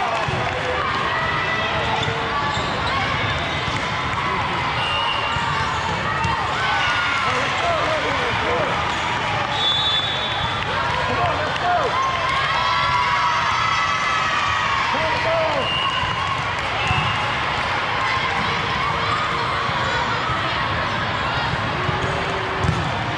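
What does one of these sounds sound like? A crowd of young girls and spectators chatters and cheers in a large echoing hall.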